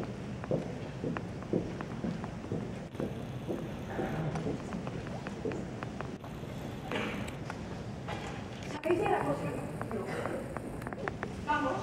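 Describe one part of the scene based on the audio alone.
Footsteps tap across a wooden stage floor.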